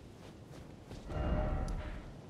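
A game map opens with a low whoosh.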